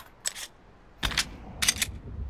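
A pistol clicks and rattles as it is handled.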